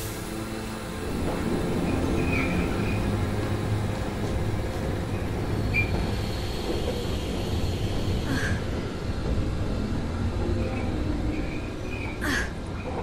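A mine cart rumbles along metal rails.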